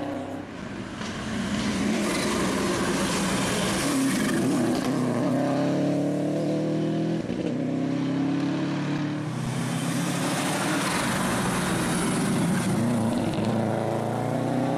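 Tyres hiss and scrub on the road surface.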